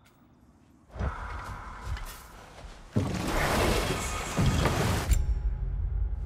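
Water splashes around a wooden boat.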